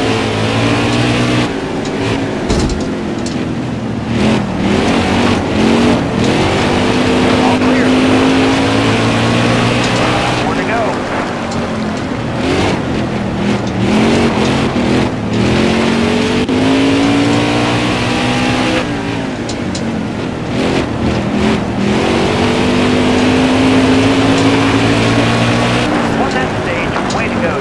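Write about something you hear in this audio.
A race car engine roars and revs up and down through the gears.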